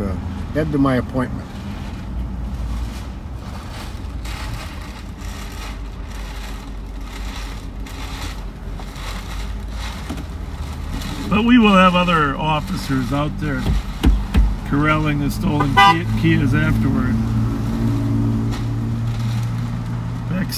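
A car engine idles with a low, steady hum from inside the car.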